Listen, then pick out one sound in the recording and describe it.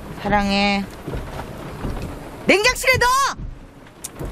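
A woman speaks with emotion close by.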